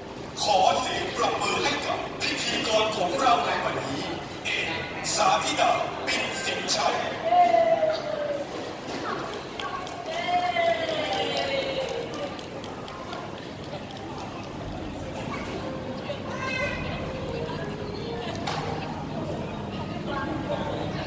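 Pop music with singing plays loudly over loudspeakers in a large echoing hall.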